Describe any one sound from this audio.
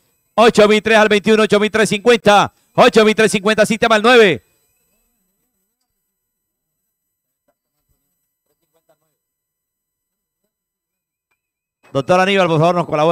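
A man rapidly calls out an auction over a loudspeaker.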